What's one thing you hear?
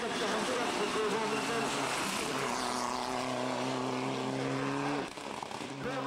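A rally car engine roars past at high revs.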